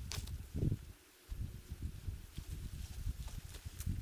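A man rakes dry leaves.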